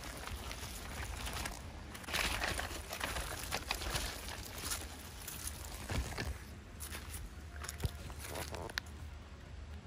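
Fabric rustles close by.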